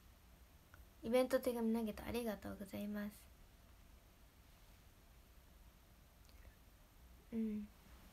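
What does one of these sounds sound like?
A young woman speaks softly and casually, close to a microphone.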